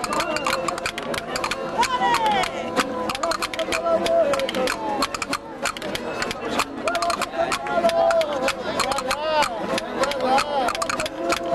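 Men and women sing together loudly nearby.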